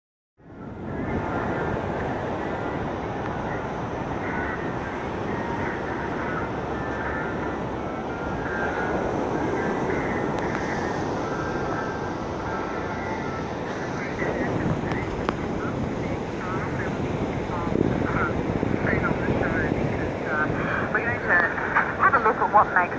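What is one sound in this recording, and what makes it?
A portable radio gives off warbling, chirping tones.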